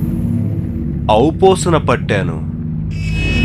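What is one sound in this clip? A man speaks with animation, close by.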